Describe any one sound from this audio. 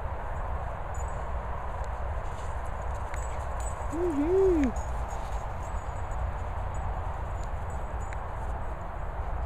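Dog paws patter and thud across frosty grass outdoors.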